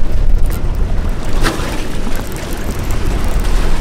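A fishing reel clicks as a man winds in line.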